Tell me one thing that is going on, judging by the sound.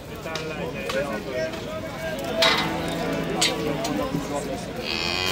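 Several men talk at once close by.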